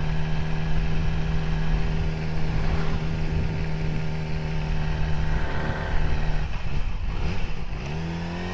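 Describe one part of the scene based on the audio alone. A motorcycle engine drones steadily.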